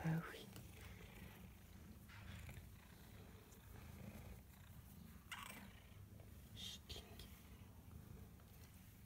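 A hand rubs and rustles against a cat's fur.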